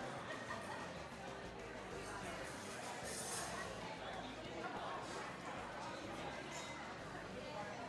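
A crowd of diners murmurs and chatters quietly in the background.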